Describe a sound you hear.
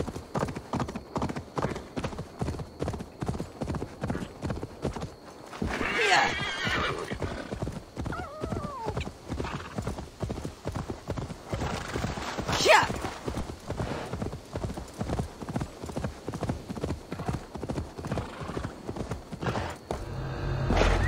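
Horse hooves thud in a fast, steady gallop.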